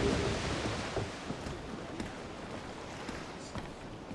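Boots thud on a wooden deck.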